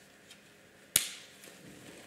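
A plastic buckle clicks shut.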